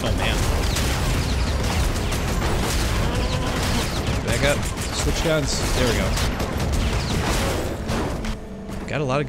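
Rapid gunfire and blasts crackle in a video game.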